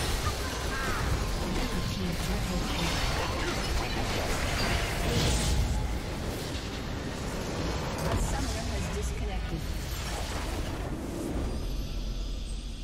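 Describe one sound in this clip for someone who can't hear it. Magic blasts and crackling spell effects burst rapidly, one after another.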